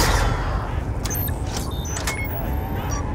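Gunshots ring out in a quick burst.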